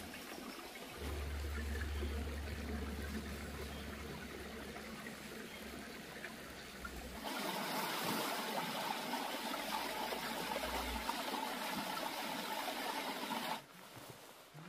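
A shallow stream trickles and babbles over stones.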